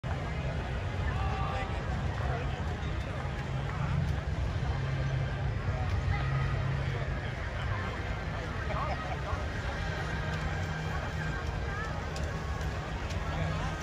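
A crowd of people murmurs and chatters at a distance.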